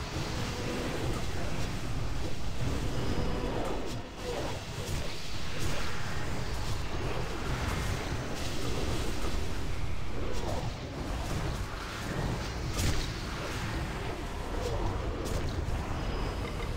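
Spell effects crackle and boom in a busy game battle.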